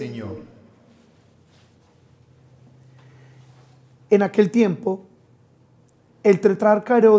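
A man reads aloud calmly into a microphone in an echoing room.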